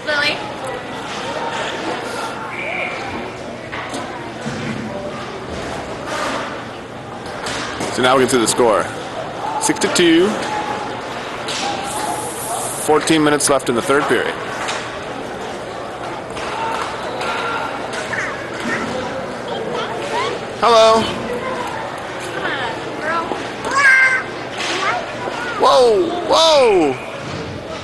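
Skate wheels roll steadily over a hard floor.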